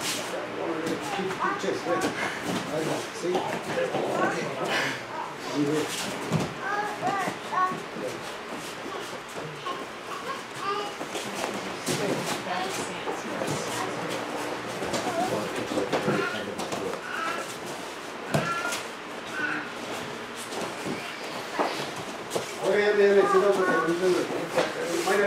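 Bare feet thud and shuffle on a mat.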